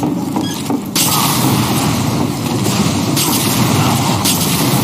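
Rockets explode with loud booming bangs.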